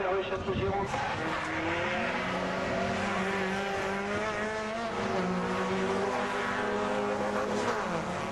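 Racing car engines roar and rev loudly as the cars speed past.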